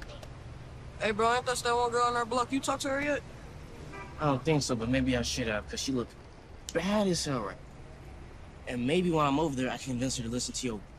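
A second teenage boy answers in a calm voice.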